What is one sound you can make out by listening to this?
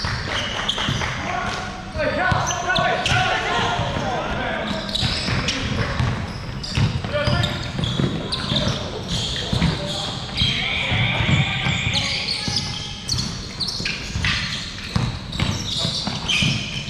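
Sneakers squeak sharply on the court.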